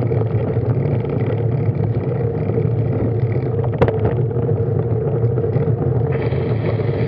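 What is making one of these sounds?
Wind buffets a microphone on a moving bicycle, outdoors.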